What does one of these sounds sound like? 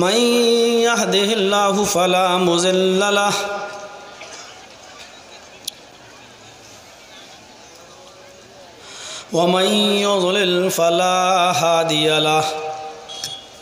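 A man chants in a melodic, drawn-out voice through a microphone and loudspeakers, in a large echoing space.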